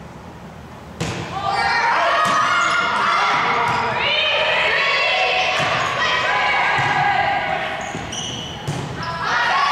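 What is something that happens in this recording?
A volleyball is struck with a sharp thud in an echoing gym.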